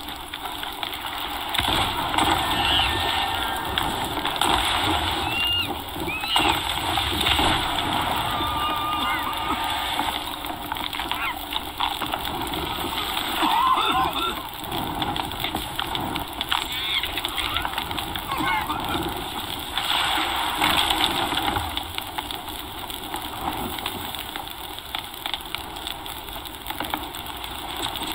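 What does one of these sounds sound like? Fire crackles and roars on a wooden ship.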